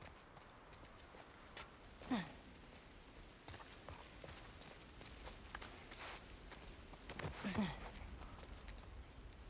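Footsteps crunch through grass and over stone.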